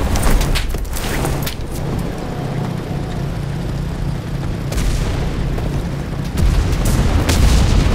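A tank engine rumbles nearby.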